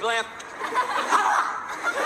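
An elderly man laughs loudly.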